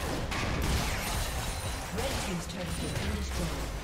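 A tower crumbles with a crash in a video game.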